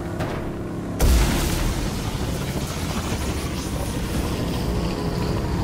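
A jet thruster roars loudly.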